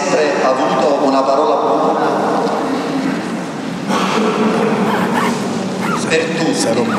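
A middle-aged man speaks calmly into a microphone, heard through loudspeakers in an echoing hall.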